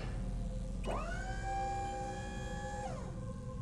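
A lift whirs into motion with a rising whine.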